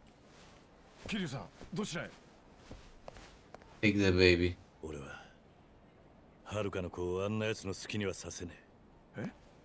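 A man speaks firmly and gruffly, close by.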